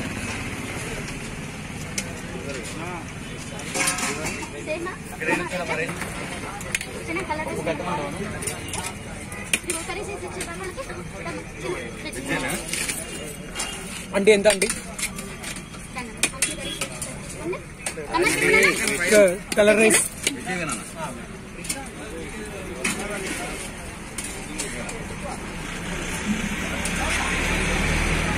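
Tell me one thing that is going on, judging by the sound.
A crowd of men chatter outdoors.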